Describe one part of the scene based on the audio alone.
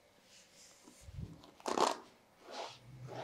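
A brush scratches through hair.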